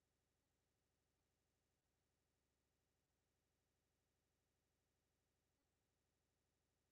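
A clock ticks steadily and softly.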